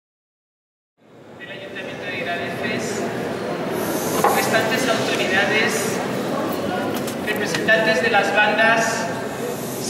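A middle-aged woman speaks calmly into a microphone in a large echoing hall.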